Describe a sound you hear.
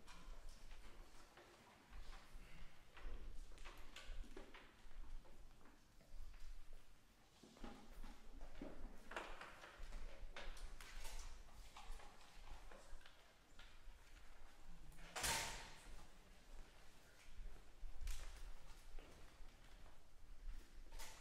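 An audience murmurs quietly in a large echoing hall.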